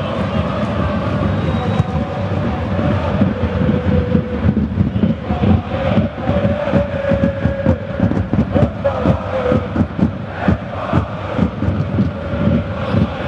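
Players shout to each other across an outdoor field.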